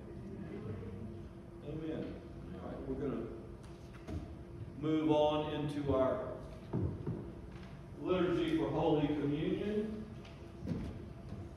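An elderly man speaks calmly through a microphone in a room with some echo.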